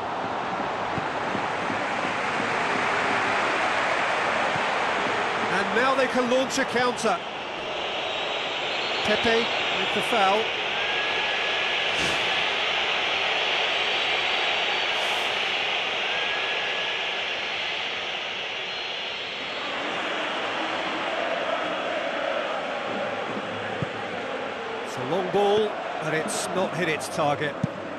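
A large crowd roars steadily, as if in a stadium.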